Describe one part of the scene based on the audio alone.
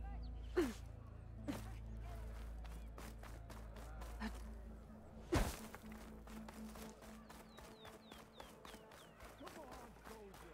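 Quick footsteps crunch on dry ground.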